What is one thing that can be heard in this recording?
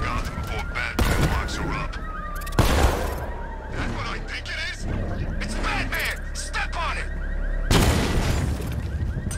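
Loud crashes and explosions burst now and then.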